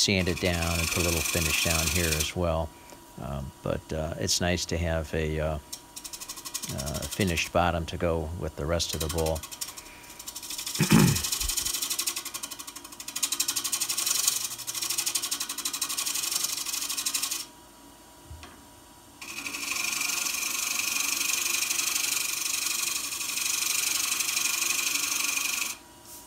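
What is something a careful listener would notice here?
A lathe spins with a steady hum.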